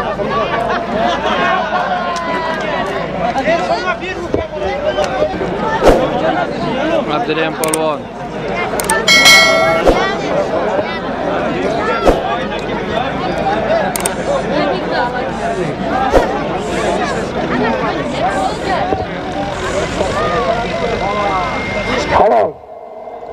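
A crowd of men shouts and chatters outdoors.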